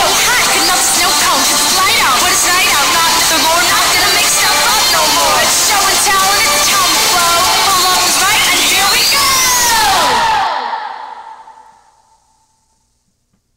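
A pop song with young women singing plays loudly, then quickly fades out.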